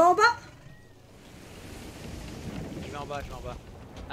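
A cannon fires with a heavy boom.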